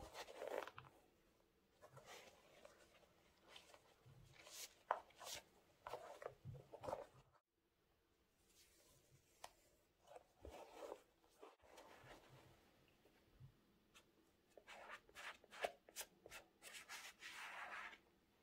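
Sneaker laces click and rattle against the shoe.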